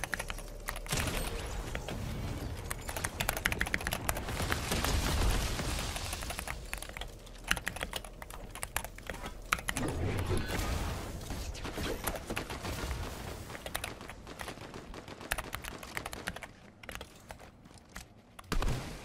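Rapid gunshots crack from a video game.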